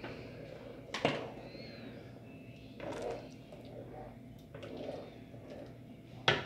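A spoon stirs and sloshes liquid in a pot.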